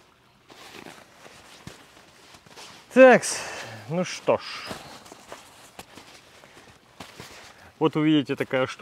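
A life jacket's fabric rustles and crinkles as it is handled.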